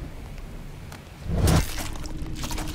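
A fist lands a hard punch.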